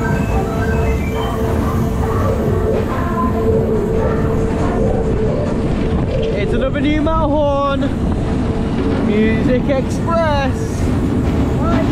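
A fairground ride whirls and rumbles steadily.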